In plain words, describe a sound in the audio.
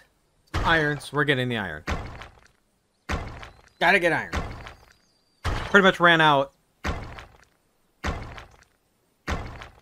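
A pickaxe strikes rock with sharp, repeated clinks.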